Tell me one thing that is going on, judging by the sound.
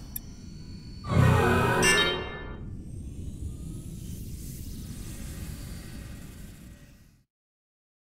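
A spaceship engine hums steadily, then falls silent.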